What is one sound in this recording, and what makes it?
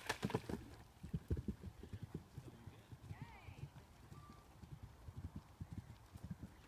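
Hooves thud on grass as a horse canters away.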